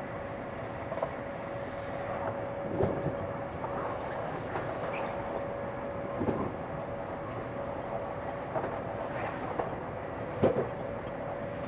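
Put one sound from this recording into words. Train wheels clack over rail joints now and then.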